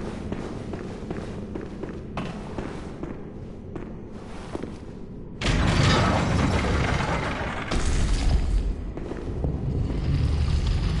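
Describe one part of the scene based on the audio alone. Footsteps walk on a stone floor.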